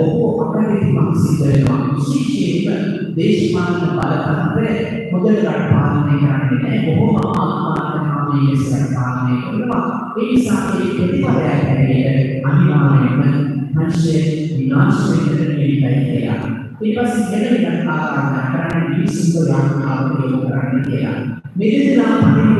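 A man speaks steadily through a microphone and loudspeakers in an echoing hall.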